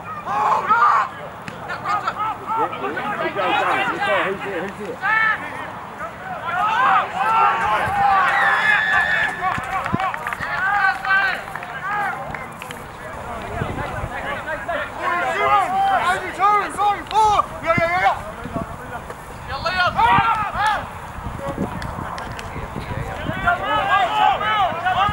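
Nearby spectators, men and women, talk and shout with animation outdoors.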